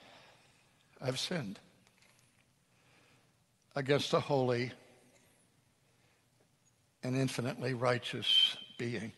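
An elderly man speaks into a microphone in short, deliberate phrases with pauses between them.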